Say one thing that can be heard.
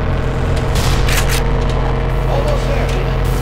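An automatic rifle fires in short bursts.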